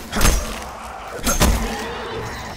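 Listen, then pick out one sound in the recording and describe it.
A heavy melee blow lands with a thud.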